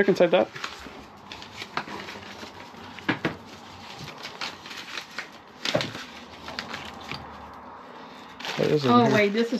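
Objects knock and rustle as they are moved around.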